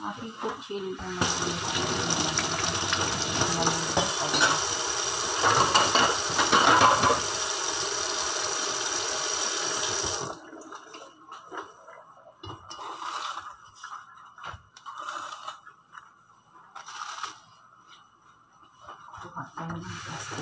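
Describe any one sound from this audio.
Dishes clink softly against the sink.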